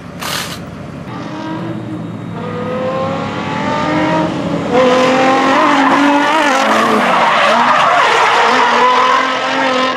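A car engine roars and revs nearby.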